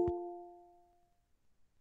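A soft electronic chime rings once and fades.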